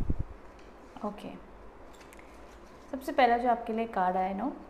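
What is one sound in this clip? A young woman speaks calmly and close by, through a clip-on microphone.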